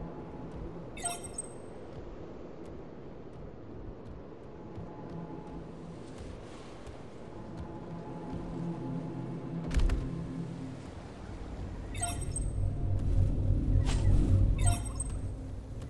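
A short electronic alert chimes several times.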